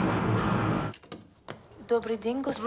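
A door opens with a click.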